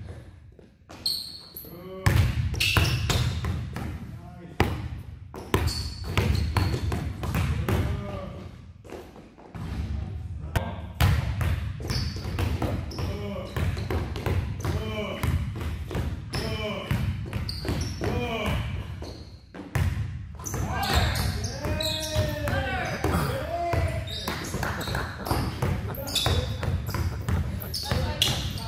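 A basketball bounces on a hard indoor court.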